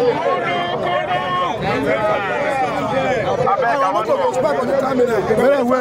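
Several men talk and shout over each other nearby, outdoors.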